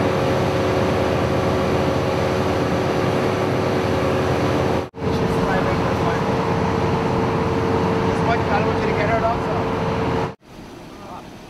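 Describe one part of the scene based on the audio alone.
A vehicle engine idles close by with a steady hum.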